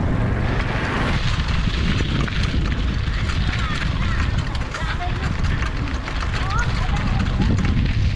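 Bicycle tyres roll and crunch over gravel.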